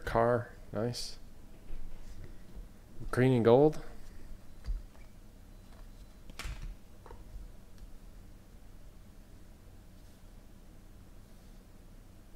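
Trading cards rustle and slide against each other as they are sorted by hand.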